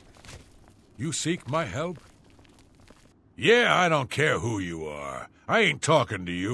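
A man with a deep, gruff voice speaks rudely and dismissively.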